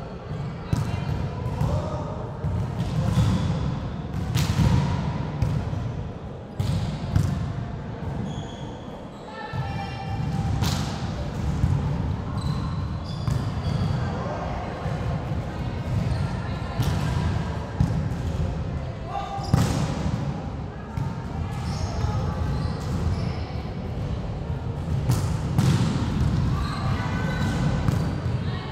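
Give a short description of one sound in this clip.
Young girls call out to each other during play.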